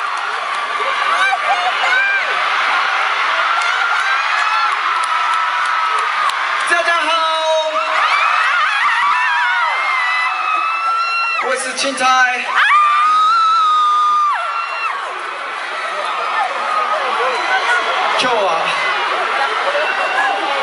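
A large crowd cheers and screams loudly in an echoing arena.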